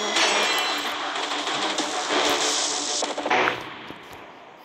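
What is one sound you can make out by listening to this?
A triumphant victory jingle plays with a shimmering swell.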